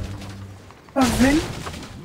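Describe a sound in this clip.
A pickaxe thuds against a wooden crate.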